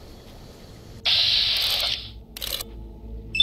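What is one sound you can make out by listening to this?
An energy weapon fires with a loud crackling hiss.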